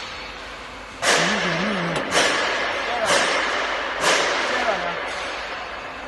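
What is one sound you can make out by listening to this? A sheet of metal unrolls from a coil with loud, booming metallic rumbles.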